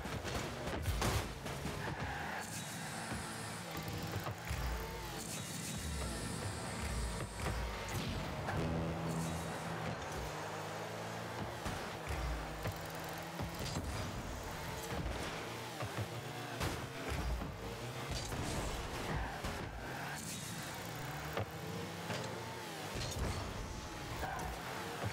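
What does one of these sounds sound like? Car engines hum and roar, rising and falling as they speed up.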